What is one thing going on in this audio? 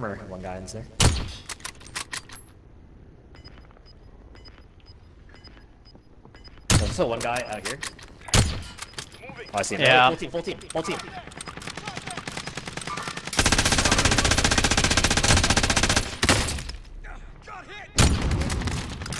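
A rifle fires loud, sharp shots.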